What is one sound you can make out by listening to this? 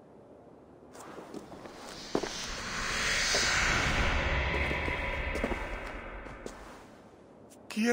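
A magical whoosh swells and fades.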